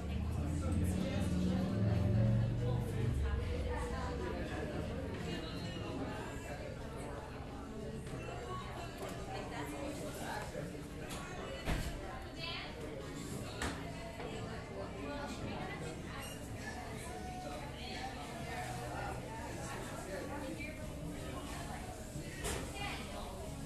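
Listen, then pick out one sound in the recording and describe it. Many people chat indistinctly in a busy room.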